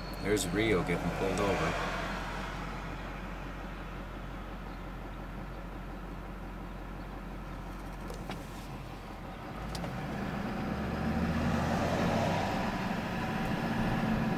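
A car engine hums steadily while driving down a highway.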